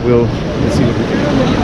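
A man speaks briefly close by.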